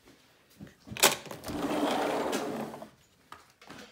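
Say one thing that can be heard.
A sliding glass door rumbles open along its track.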